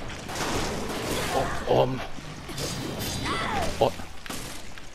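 A monster growls and snarls up close.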